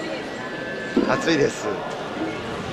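A middle-aged man laughs briefly nearby.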